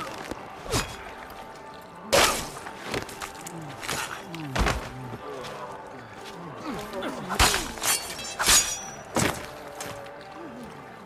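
Swords clash and strike in quick, sharp blows.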